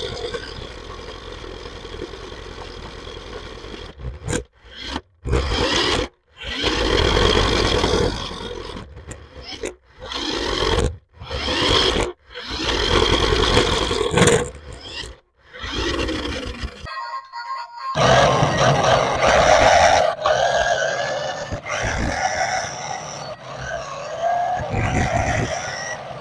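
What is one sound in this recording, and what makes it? A small toy car motor whirs as wheels roll over a hard floor.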